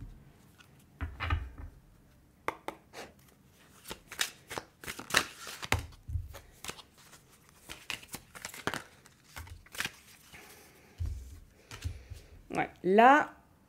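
Cards slide and tap softly on a glass tabletop.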